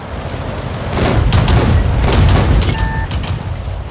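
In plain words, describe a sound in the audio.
A shell explodes nearby with a heavy blast.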